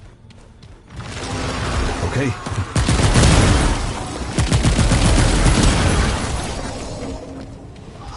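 Gunfire and loud impacts crash in rapid bursts.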